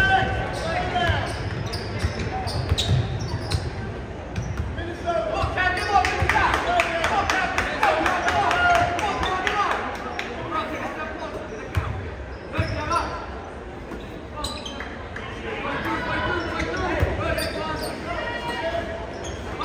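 A basketball bounces on the court with dull thuds.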